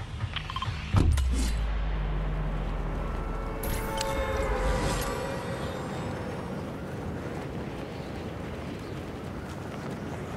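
Wind rushes loudly past during a fall through the air.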